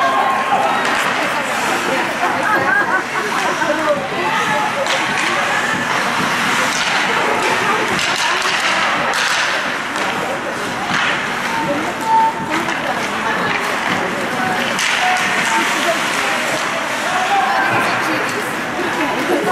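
Ice skate blades scrape and carve across the ice in an echoing indoor rink.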